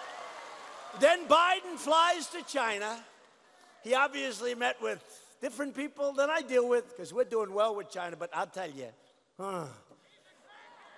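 An elderly man speaks emphatically through a microphone and loudspeakers.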